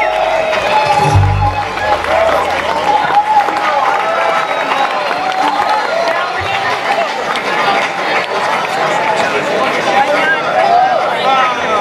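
Acoustic guitars strum a lively tune in a live room.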